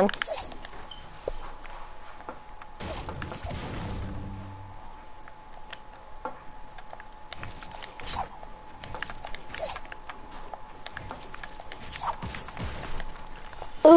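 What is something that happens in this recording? Wooden planks snap into place with quick knocking clicks.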